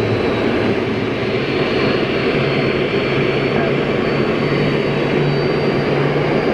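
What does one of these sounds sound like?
A high, steady turbine whine rings over the roar of jet engines.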